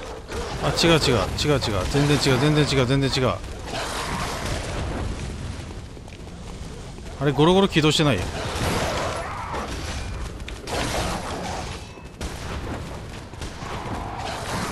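Footsteps run quickly over stone.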